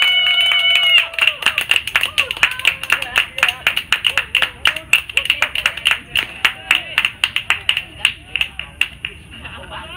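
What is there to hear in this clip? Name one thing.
Hands clap in a fast rhythm.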